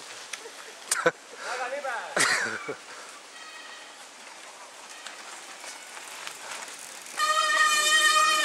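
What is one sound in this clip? Mountain bikes rattle and crunch over a rough dirt trail.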